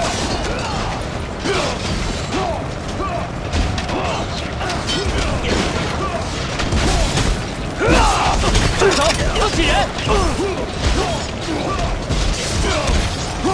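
A crowd of men shout and yell in battle.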